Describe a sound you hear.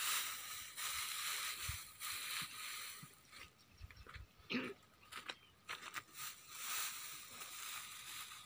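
Dry straw rustles as a bundle is handled.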